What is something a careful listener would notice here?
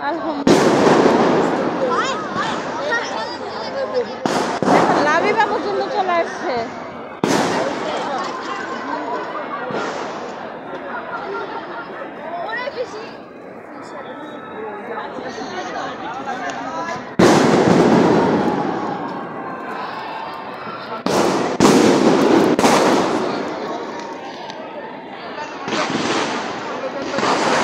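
A crowd of men and women talks and shouts nearby outdoors.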